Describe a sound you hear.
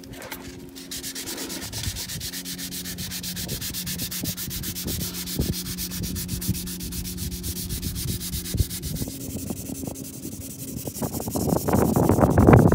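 A sanding block rubs back and forth on a fibreglass hull.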